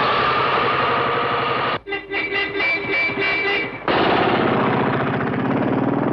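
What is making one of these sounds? A motorcycle engine runs and pulls away.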